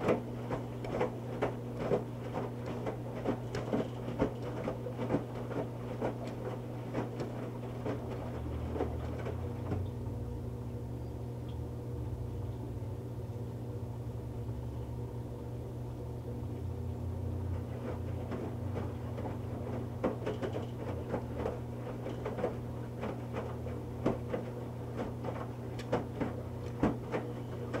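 Wet laundry sloshes and thumps inside a turning washing machine drum.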